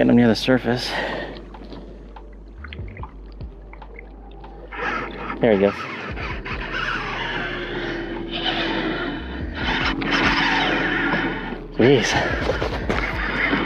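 Water laps against a kayak's hull.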